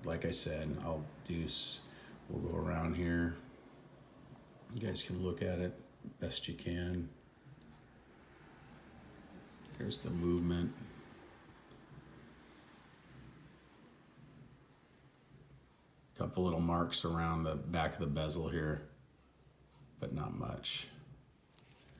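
A metal watch bracelet clinks softly as it is handled.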